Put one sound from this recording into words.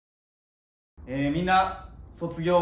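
A man speaks loudly to a room.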